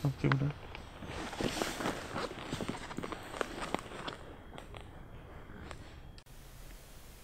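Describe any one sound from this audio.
A plastic tarp rustles and crinkles.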